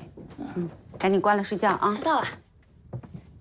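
A girl answers briefly in a bright voice.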